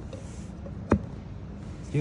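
A metal plate clicks into place on a clamp.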